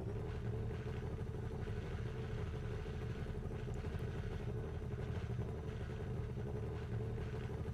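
A racing car engine idles with a low steady drone.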